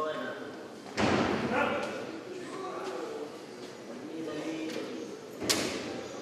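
A heavy barbell clanks down onto its rack.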